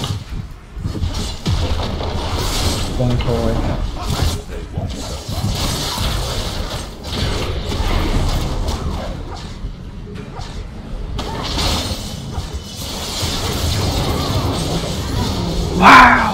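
Fighting sound effects from a video game burst and crackle.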